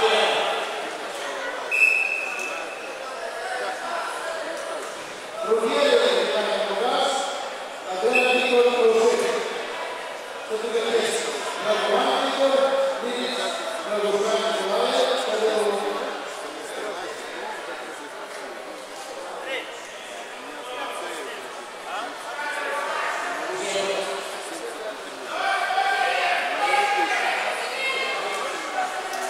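A man speaks loudly to a group in a large echoing hall.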